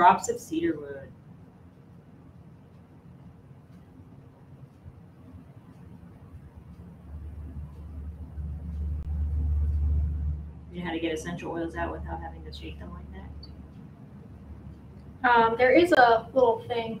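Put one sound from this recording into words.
A woman speaks calmly close by.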